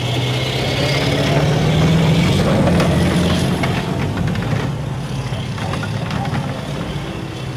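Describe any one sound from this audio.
Steel tracks clank and squeal.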